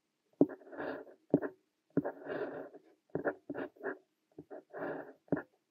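A fountain pen scratches across paper in short strokes, close up.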